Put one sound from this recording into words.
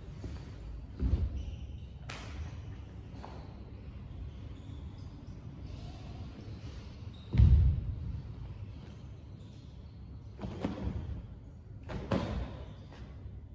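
Bare feet stamp heavily on a wooden floor in an echoing hall.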